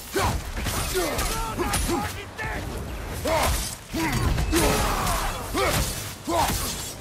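Weapons clash and strike with heavy blows.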